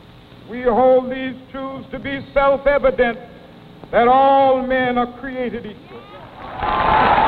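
A man orates passionately into microphones outdoors, his voice echoing.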